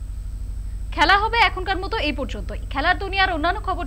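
A young woman reads out the news clearly into a microphone.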